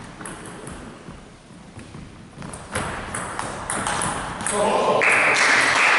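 A table tennis ball clicks sharply back and forth off paddles and a table in an echoing hall.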